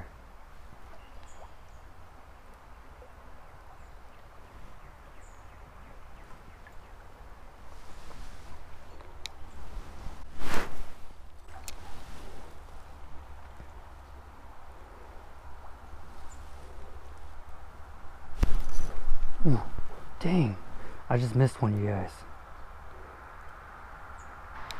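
Water flows gently in a stream.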